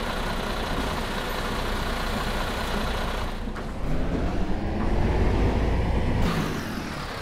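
A bus engine hums steadily from inside the bus.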